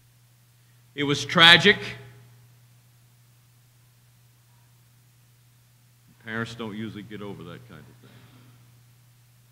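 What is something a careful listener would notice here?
An elderly man speaks through a microphone in a hall with a slight echo, in short phrases with pauses.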